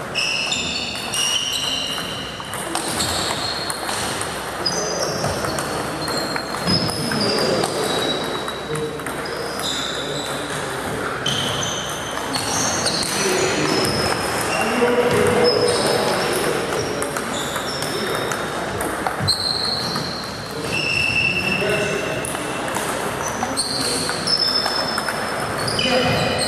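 Sports shoes squeak sharply on a wooden floor.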